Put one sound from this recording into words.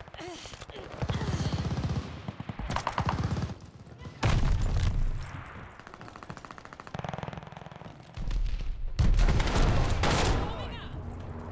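Gunfire bursts in rapid volleys from a game.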